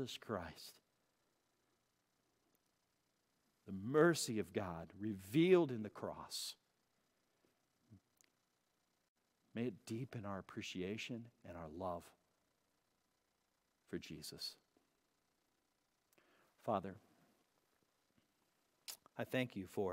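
A middle-aged man speaks calmly into a microphone, in short phrases with pauses.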